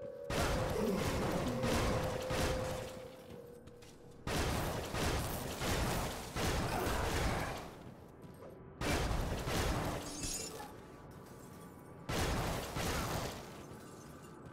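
Weapons strike and clash in quick hits.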